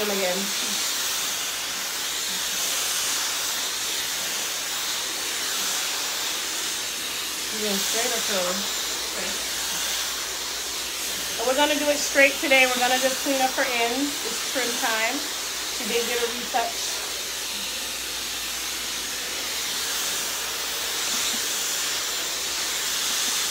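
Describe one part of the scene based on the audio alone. A hair dryer blows with a steady loud whoosh.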